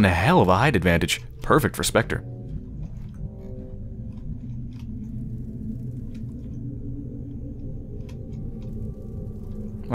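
Flames crackle steadily.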